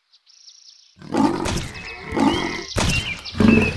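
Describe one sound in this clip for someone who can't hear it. A big cat snarls and growls fiercely.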